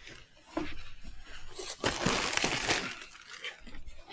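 A person walks across a hard floor.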